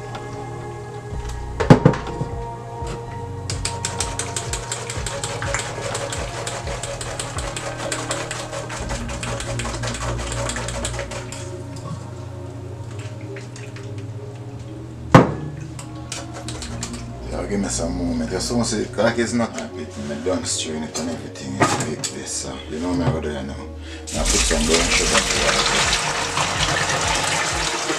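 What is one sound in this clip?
Juice pours into a mesh strainer.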